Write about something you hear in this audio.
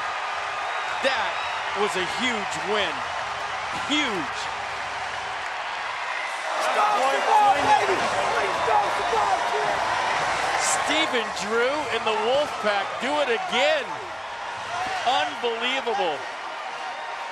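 Men shout and whoop excitedly close by.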